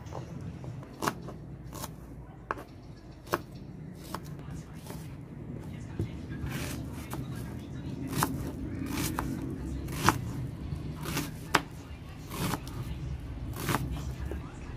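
A knife chops through onions against a cutting board with sharp taps.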